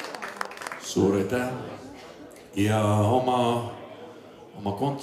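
A man sings into a microphone over a loudspeaker.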